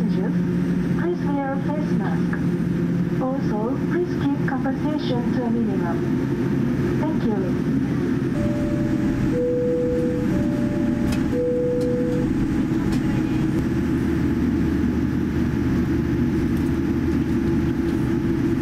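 Jet engines hum steadily from inside an aircraft cabin.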